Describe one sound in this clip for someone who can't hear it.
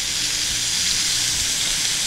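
A metal spatula scrapes a frying pan.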